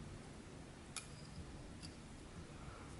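Small scissors snip once or twice close by.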